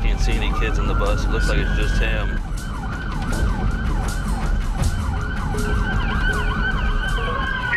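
A siren wails nearby in a fast, repeating yelp.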